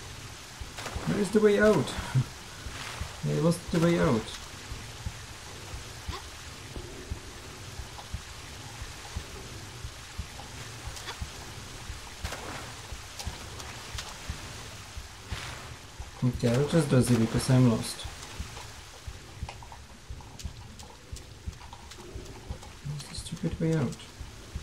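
A man talks casually into a close microphone, in short bursts.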